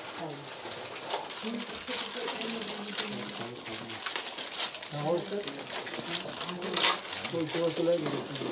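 Paper and wrappers rustle and crinkle as food is unwrapped.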